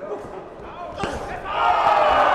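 A boxing glove lands a sharp punch.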